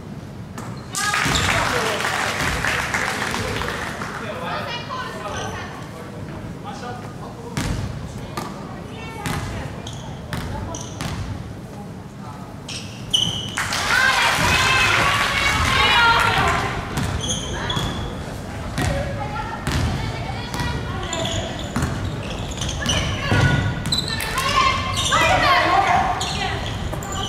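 A crowd of young spectators cheers and shouts in an echoing gym.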